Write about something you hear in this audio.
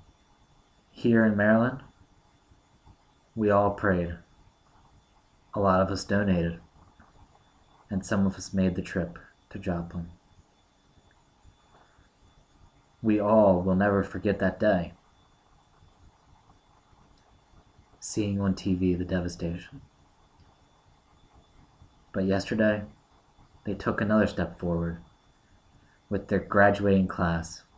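A young man speaks calmly and close by, in short phrases with pauses.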